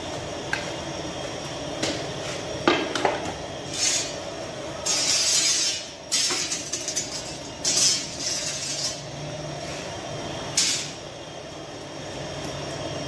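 A fire roars steadily inside an oven.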